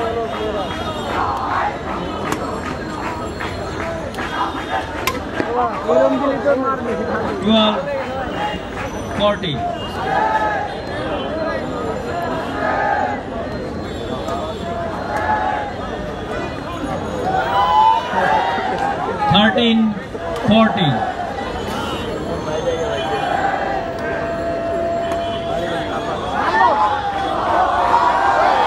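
A large crowd chatters and shouts loudly outdoors.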